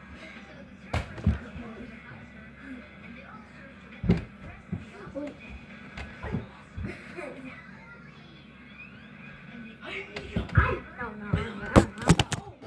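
A ball thumps against the floor and walls.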